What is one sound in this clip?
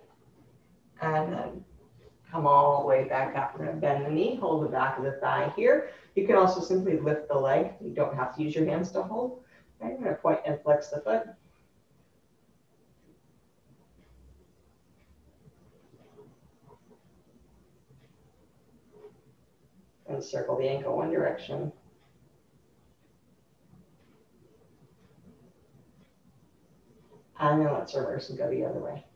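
A woman speaks calmly and clearly nearby.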